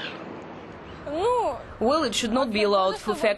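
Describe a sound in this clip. A young woman speaks calmly, close up.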